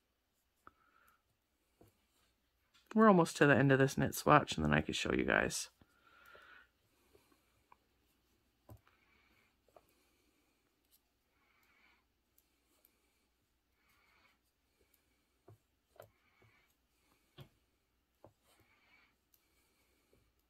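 Metal knitting needles click and tick softly against each other.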